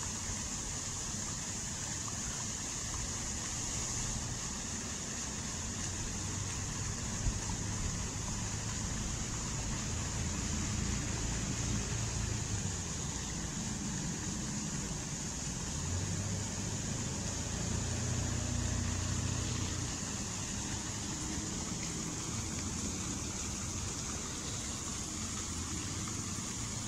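Fountain water splashes and patters steadily into a pool.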